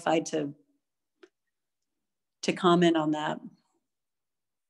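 A middle-aged woman speaks calmly and close, heard through a phone microphone.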